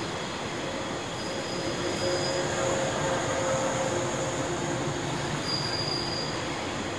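A train rumbles and hums steadily as it moves slowly along the platform.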